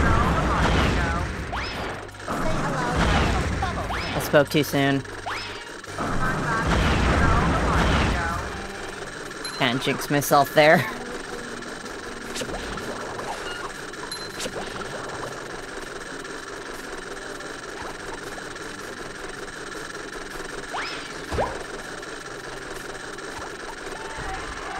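Bubbles burst and fizz in a burst of bubbly sound effects.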